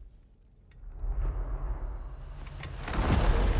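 A heavy stone door grinds open with a deep rumble.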